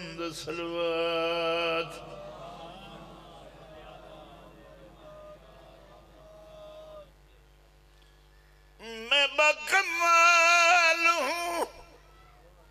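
An elderly man chants loudly in long, drawn-out calls through a microphone, and each call echoes as it fades.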